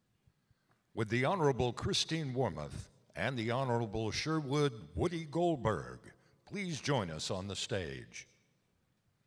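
A man speaks over a loudspeaker in a large echoing hall, announcing calmly.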